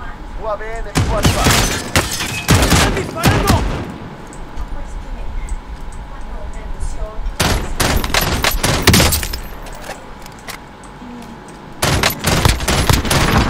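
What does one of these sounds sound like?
Rifle gunfire bursts out in a video game.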